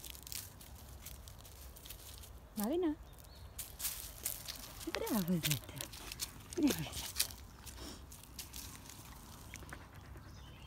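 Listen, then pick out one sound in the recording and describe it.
Footsteps rustle through dry leaves.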